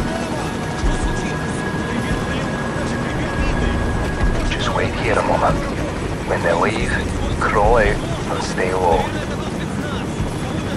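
A heavy truck engine rumbles low and steadily overhead.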